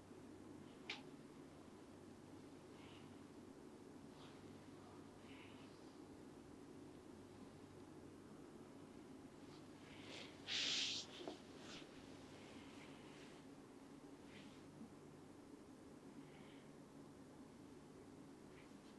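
Hands rub and rustle softly against a towel and hair, close by.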